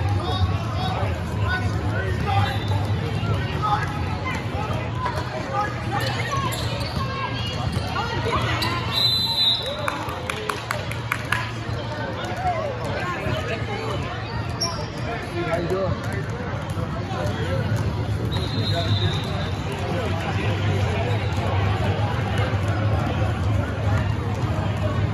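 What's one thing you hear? Spectators and young players talk and call out in a large echoing gym.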